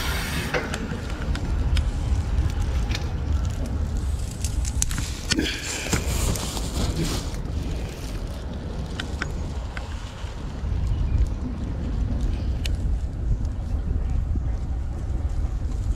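Palm fronds rustle in the wind.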